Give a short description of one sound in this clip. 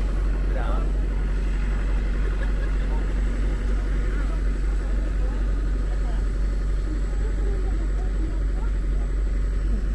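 Traffic hums steadily outdoors.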